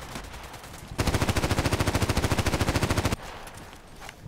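Gunfire rattles in a rapid, steady burst.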